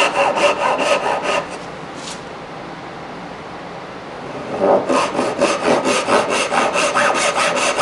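A hand saw cuts through wood in quick, rasping strokes.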